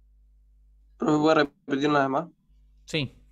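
A man sings short notes, heard through an online call.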